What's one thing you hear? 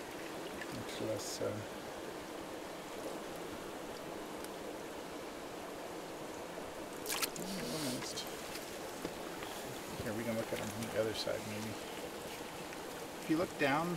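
Water sloshes and splashes as hands move in a bucket.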